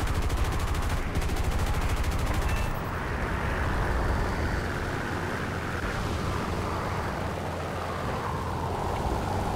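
A propeller plane's engine drones loudly and steadily.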